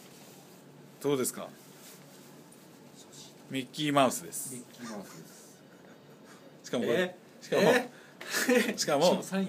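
A young man speaks close by in short, cheerful bursts.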